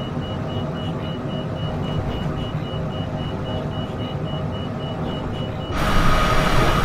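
Jet engines hum low and muffled, as if heard from inside a cabin.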